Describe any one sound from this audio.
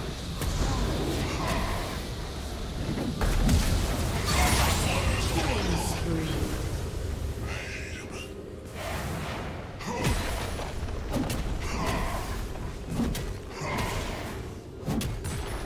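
Weapons strike with sharp hits during a video game fight.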